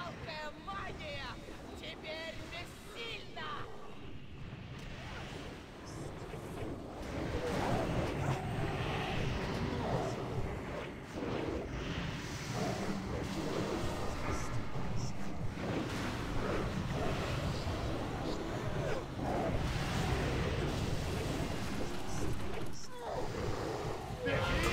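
Spell effects crackle and boom during a game battle.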